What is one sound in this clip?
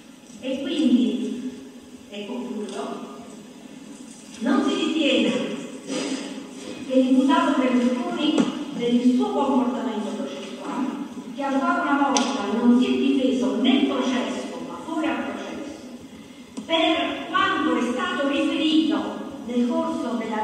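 A middle-aged woman speaks forcefully into a microphone.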